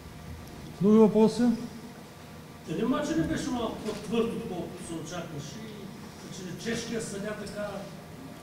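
A man speaks calmly into microphones.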